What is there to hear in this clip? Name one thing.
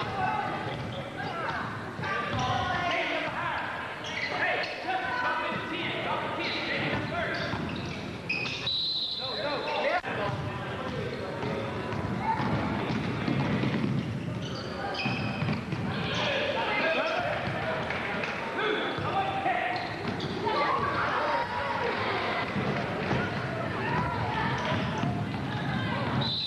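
Players' voices call out and echo around a large gym.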